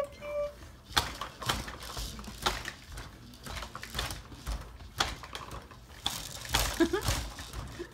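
A baby bouncer creaks and thumps as a baby bounces.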